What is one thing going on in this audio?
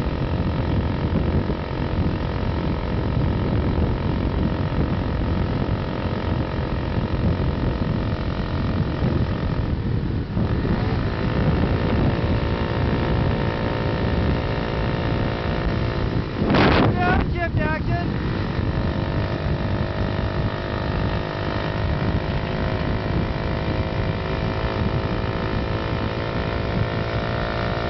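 A motorcycle engine hums steadily while riding along.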